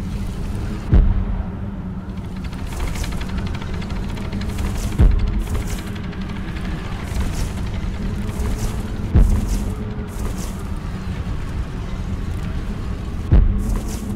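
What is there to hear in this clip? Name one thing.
Large wings flap with deep, regular whooshing beats.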